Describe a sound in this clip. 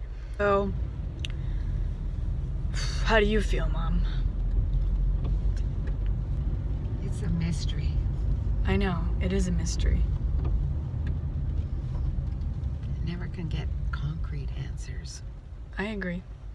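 A car engine hums steadily with road noise inside the car.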